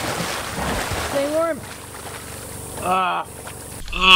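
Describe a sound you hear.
Water splashes loudly as a swimmer thrashes nearby.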